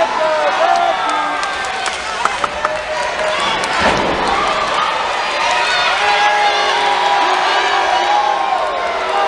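A large crowd cheers and shouts in an echoing arena.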